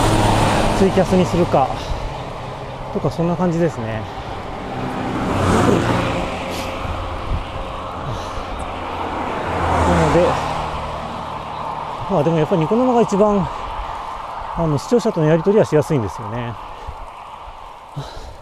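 A car drives along a road with a steady rumble of tyres and engine.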